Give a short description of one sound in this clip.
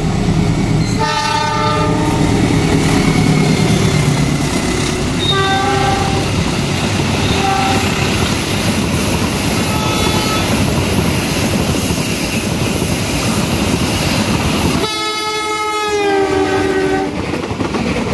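A train horn blares loudly several times.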